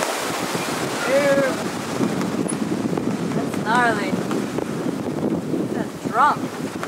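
Rough waves slap and splash against a boat's hull.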